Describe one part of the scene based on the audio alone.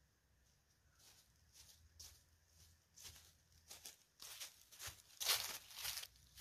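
Bare feet rustle and crunch on dry leaves.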